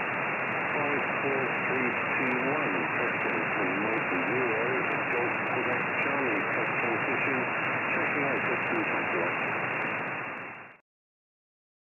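A radio receiver hisses with static and faint warbling signals.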